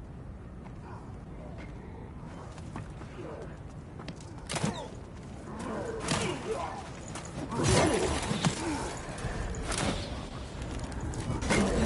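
Heavy armored footsteps thud and clank on stone.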